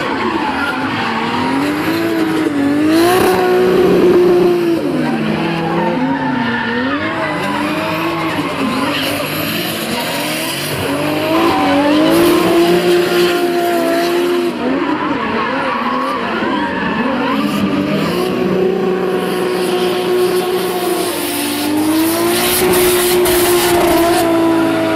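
A drift car engine revs hard, rising and falling in pitch.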